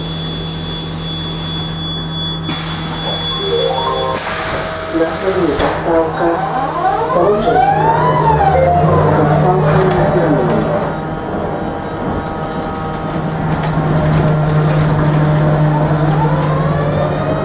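A bus engine hums steadily while the bus drives.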